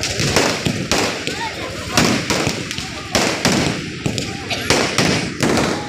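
Fireworks crackle and fizz as sparks scatter.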